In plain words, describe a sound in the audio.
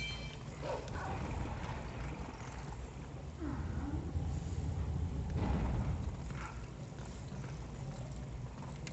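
A wolf's paws patter on dirt as it runs.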